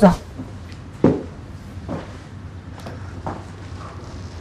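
A woman speaks a little farther off.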